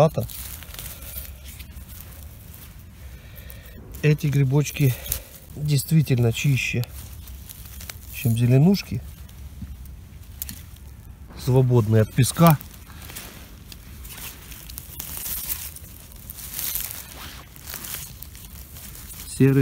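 Dry pine needles rustle and crackle as a hand digs through them.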